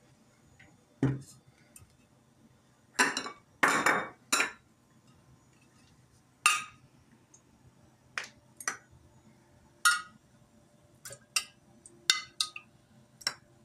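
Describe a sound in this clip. A spoon clinks and scrapes against a ceramic bowl.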